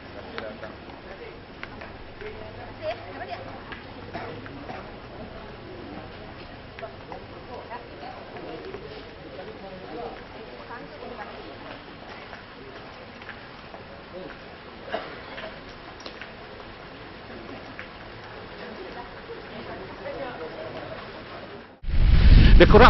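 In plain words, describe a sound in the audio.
Men and women chatter in a murmuring crowd nearby.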